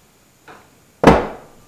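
A heavy metal part clunks down onto a hard surface.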